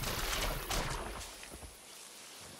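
Water splashes under an animal's paws.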